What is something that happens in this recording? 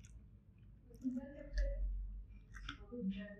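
A man chews food with his mouth close by.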